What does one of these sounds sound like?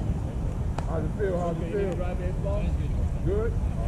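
Young men shout and call out in the distance.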